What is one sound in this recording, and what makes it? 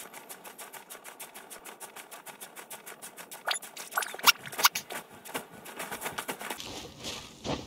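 Quick footsteps patter on rock.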